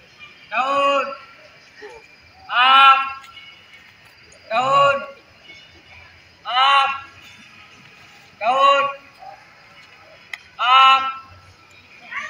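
A man shouts out counts loudly, one call every two seconds, outdoors.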